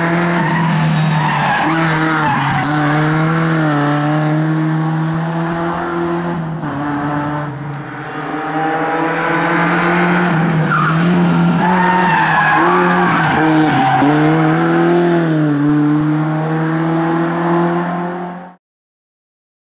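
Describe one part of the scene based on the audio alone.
A rally car engine revs hard and roars past.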